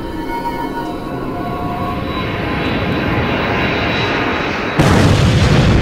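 A rocket roars steadily as it flies, growing louder.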